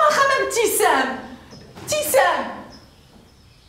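A woman calls out loudly.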